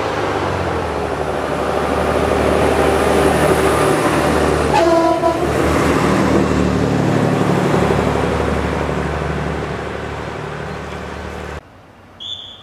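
A diesel railcar rumbles loudly as it passes close by on the tracks.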